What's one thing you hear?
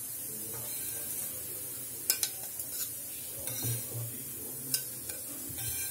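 A metal spatula scrapes and clinks against a glass plate.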